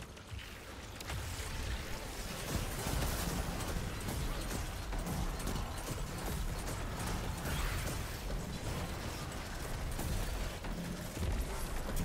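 Rapid gunfire rattles and booms continuously.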